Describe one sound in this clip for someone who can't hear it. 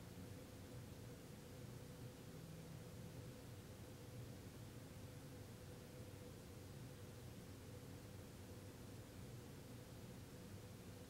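A man hums a low, steady drone.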